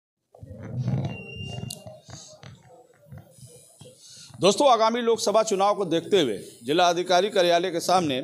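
A man speaks into a close microphone in a calm, steady voice.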